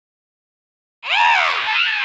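A cartoon creature wails loudly with a wavering cry.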